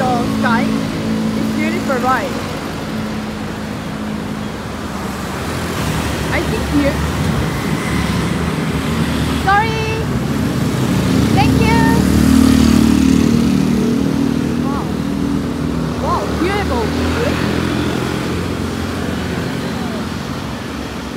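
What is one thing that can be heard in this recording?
Motor scooters hum past on a busy street.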